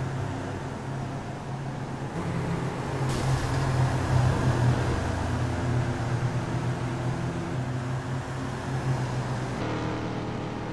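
Racing car engines roar steadily, rising and falling in pitch as the cars change gear.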